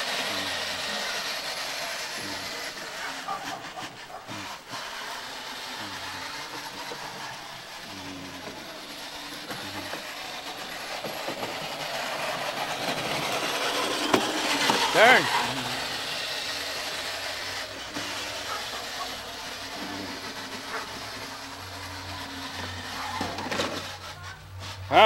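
A toy motorcycle's electric motor whirs as it drives over grass.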